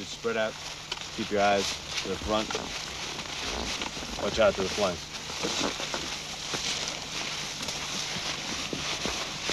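Tall grass rustles as men walk through it.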